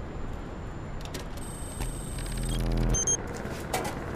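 An electronic panel beeps and chirps.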